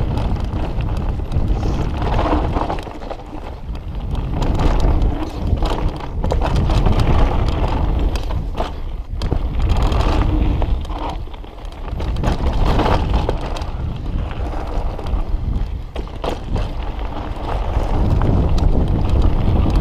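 Wind rushes loudly past a mountain bike rider.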